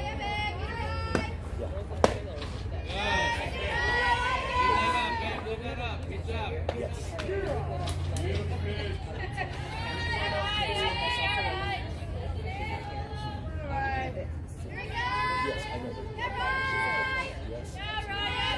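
Young women cheer and chant loudly nearby, outdoors.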